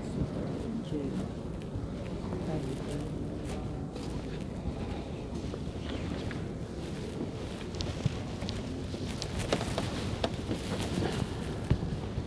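Footsteps echo on a hard floor in a large echoing hall.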